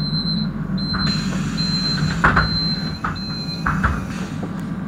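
Bus doors fold shut with a hiss and a thud.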